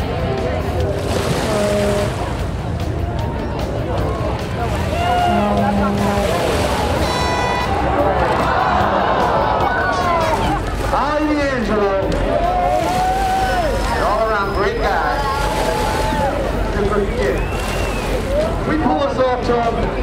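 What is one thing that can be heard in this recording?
People in a crowd whistle loudly.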